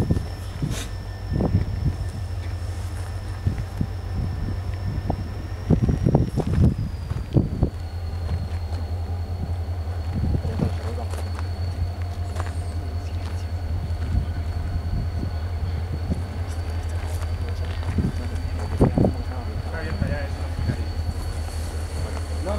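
A diesel locomotive engine idles nearby with a steady low rumble.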